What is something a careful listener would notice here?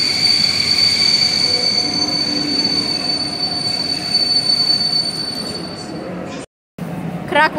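A train rolls along the tracks with a steady high whine.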